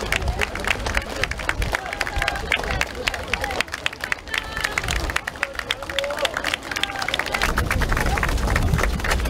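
A large crowd claps steadily outdoors.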